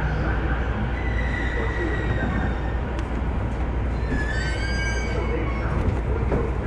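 Train brakes squeal as the train slows to a stop.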